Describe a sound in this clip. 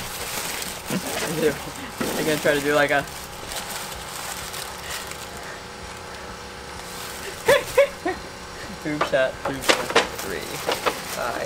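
A man speaks and laughs.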